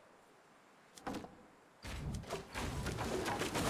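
Wooden walls knock and clatter as they snap into place.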